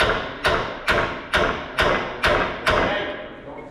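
A man hammers on metal with loud, ringing clangs, over and over.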